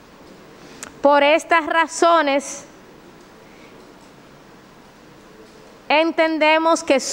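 A woman speaks into a microphone in short bursts with pauses.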